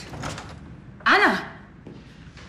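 A young woman gasps sharply.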